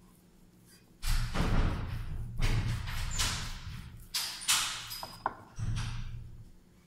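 A wooden rolling pin rolls over dough on a wooden board.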